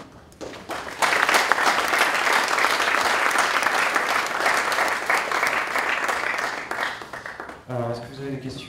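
An audience applauds.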